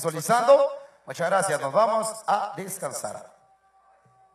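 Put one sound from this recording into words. A young man speaks with animation into a microphone over loudspeakers.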